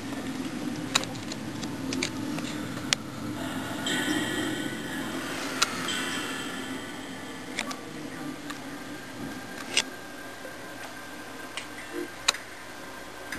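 Short electronic menu clicks sound from a television.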